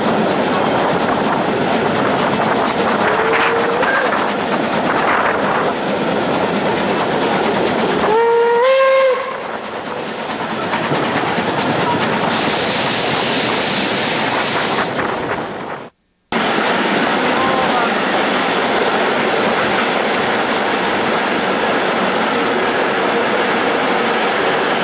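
Steam hisses and roars from the locomotive.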